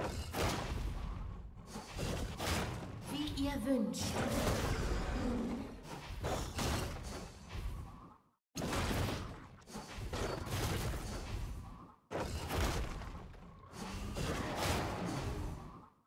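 Game spell effects and attacks crackle and whoosh in quick bursts.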